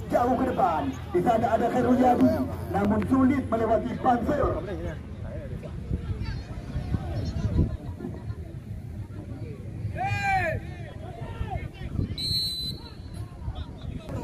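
Spectators shout and call out from the sidelines nearby.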